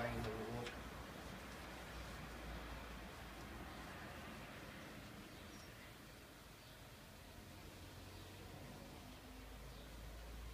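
A paintbrush swishes softly against a wooden door.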